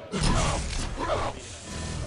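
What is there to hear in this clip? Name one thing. A weapon in a game fires with a sharp, buzzing crack.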